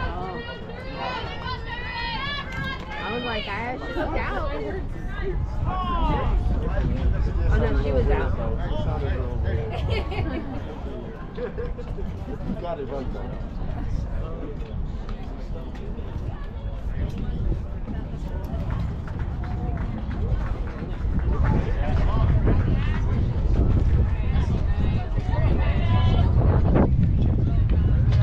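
Young girls cheer and chant loudly outdoors.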